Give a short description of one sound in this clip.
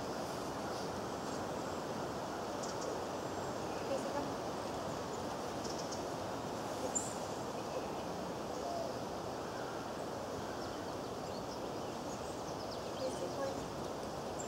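A young woman speaks calmly to a dog outdoors.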